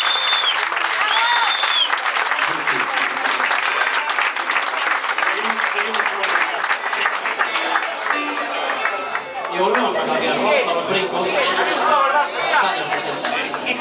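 A live band plays loud rock music with drums and electric guitars.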